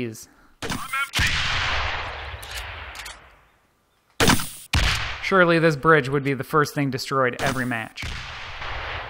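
A rifle fires loud single shots that echo and fade.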